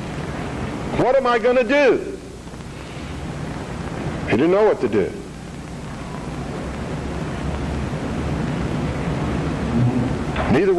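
A middle-aged man speaks slowly into a microphone, with long pauses.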